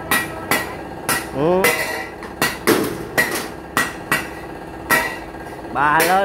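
Metal is tapped with a hammer in sharp, quick knocks.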